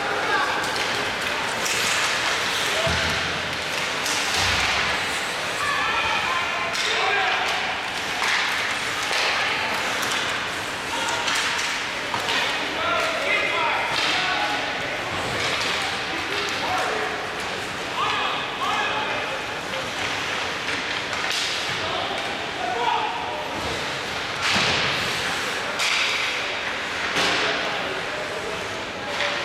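Hockey sticks clack against the puck and the ice.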